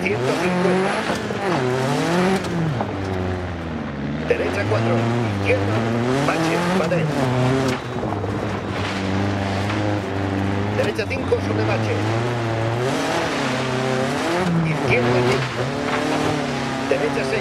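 Gravel crunches and rattles under the tyres.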